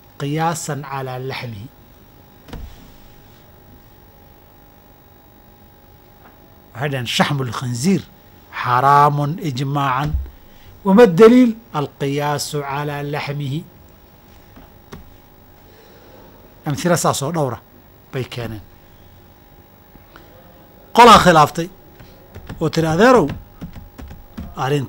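A man speaks calmly and with emphasis into a nearby microphone, pausing often.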